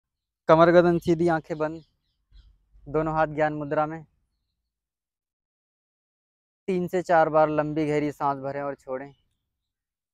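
A man speaks calmly and slowly in short phrases with long pauses.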